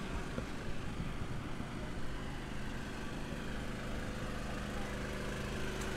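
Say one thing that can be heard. A car drives past on a road nearby.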